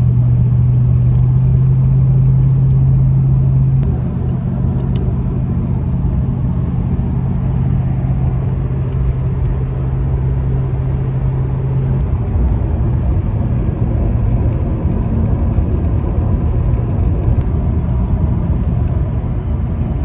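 A middle-aged woman talks calmly and close to a phone microphone.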